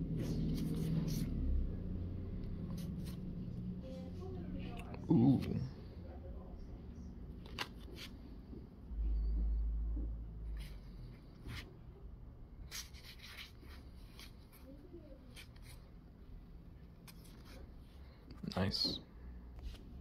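Trading cards slide and rustle against each other in a hand.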